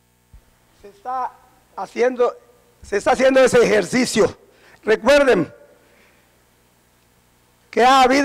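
A middle-aged man speaks forcefully into a microphone in a reverberant hall.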